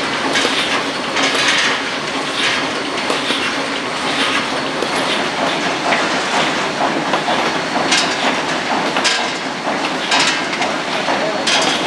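A machine clatters and clicks rapidly.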